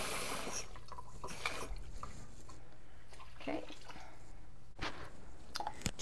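Liquid pours into a pan.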